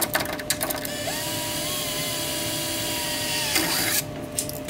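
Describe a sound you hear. A cordless drill whirs steadily.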